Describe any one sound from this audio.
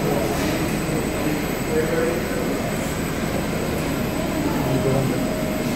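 A packaging machine hums and rattles steadily.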